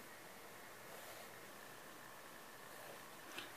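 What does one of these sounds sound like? A felt pen squeaks faintly across paper.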